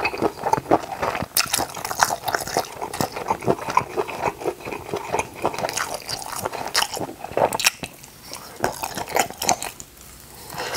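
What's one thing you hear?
A man chews food wetly and loudly close to a microphone.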